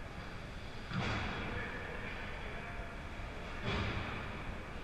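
Sticks and pucks knock sharply against the ice and boards.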